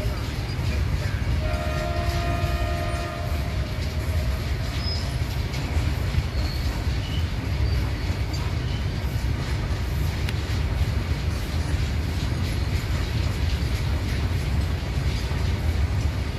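A freight train rumbles steadily along the tracks close by.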